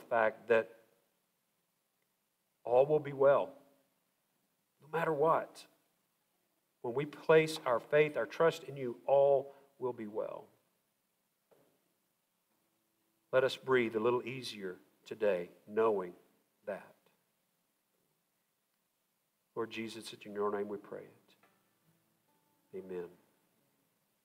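A man speaks calmly through a microphone in a large echoing hall, with long pauses.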